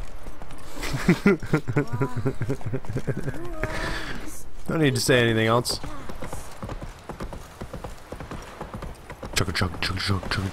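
A horse's hooves clop quickly on hollow wooden planks.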